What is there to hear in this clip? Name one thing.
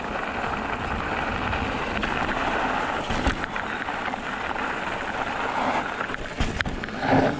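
An electric mountain bike's tyres roll over packed dirt and gravel.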